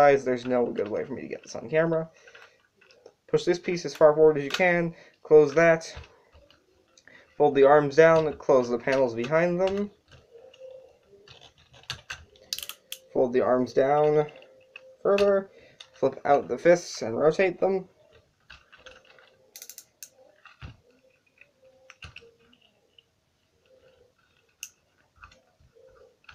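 A plastic toy figure taps and clicks against a hard table.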